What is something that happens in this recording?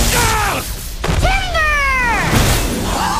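A tree crashes down into snow.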